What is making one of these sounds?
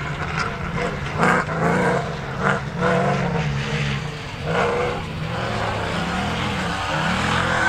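A rally 4x4 engine revs hard at full throttle, rising and falling through the gears.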